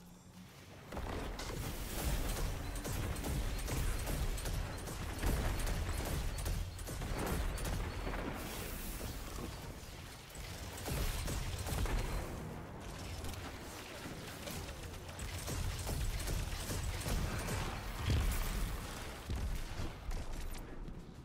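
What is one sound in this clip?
Rapid gunfire blasts loudly and repeatedly.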